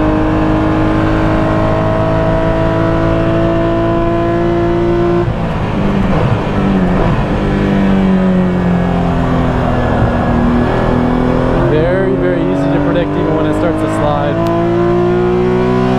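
A race car engine roars loudly, its pitch rising and falling as the gears shift.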